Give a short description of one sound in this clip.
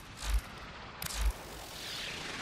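Short electronic whooshes sound as menu options are selected.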